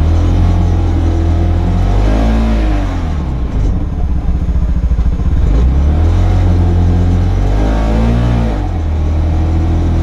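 A car engine hums steadily, rising and falling in pitch as the car drives.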